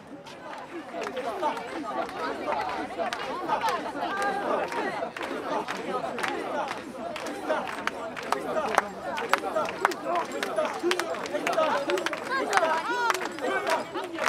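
A crowd of men and women chants loudly in rhythm close by.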